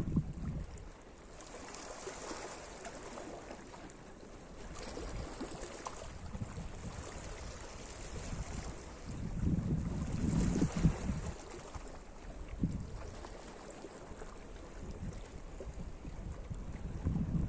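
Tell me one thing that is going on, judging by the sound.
Small waves lap gently against rocks at the shore.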